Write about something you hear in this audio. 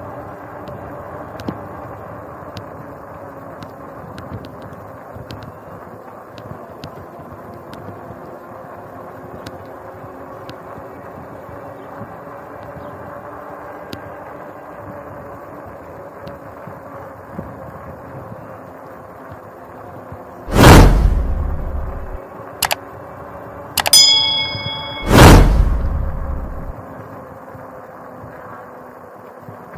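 Bicycle tyres hum steadily on a concrete surface.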